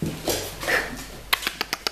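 A puppy's claws click and patter on a hard floor.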